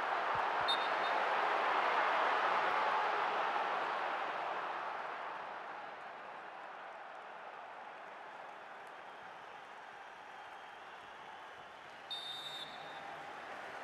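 A large stadium crowd roars loudly and then slowly dies down to a murmur.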